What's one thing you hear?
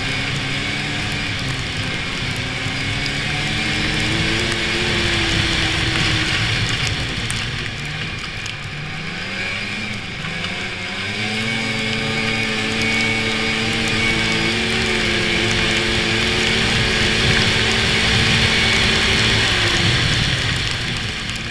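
A snowmobile engine drones steadily, rising and falling in pitch.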